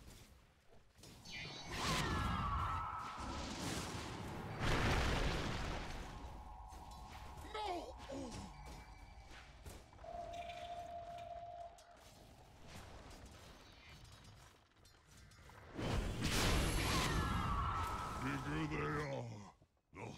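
Weapons clash and strike in a fierce fight.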